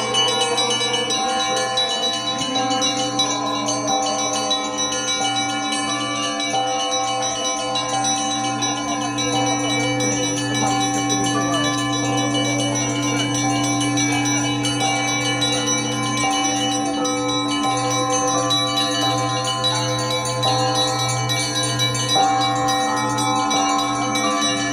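A large crowd sings a slow hymn together outdoors.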